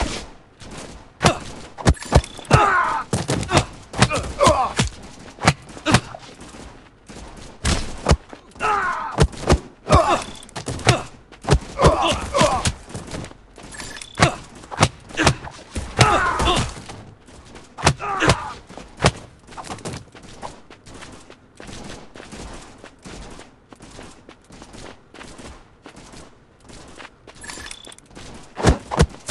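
Punches and kicks land with sharp thuds in quick bursts.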